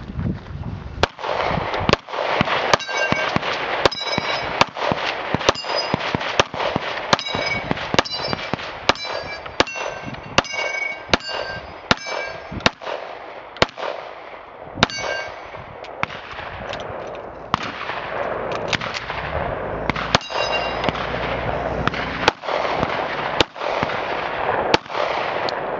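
A pistol fires rapid shots outdoors, each crack sharp and loud.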